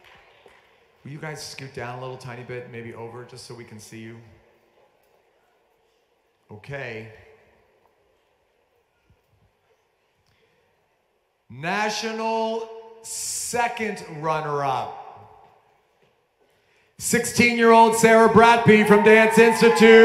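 A man speaks into a microphone with animation, amplified in a large hall.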